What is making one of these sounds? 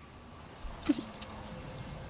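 A bowstring snaps as an arrow is loosed.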